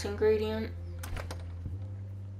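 A door handle clicks as a door is opened.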